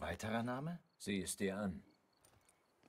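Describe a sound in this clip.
A second man answers briefly in a deep, gravelly voice.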